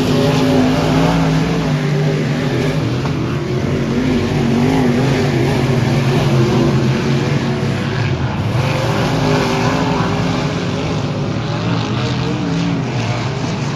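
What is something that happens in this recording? Race car engines roar loudly and rise and fall in pitch.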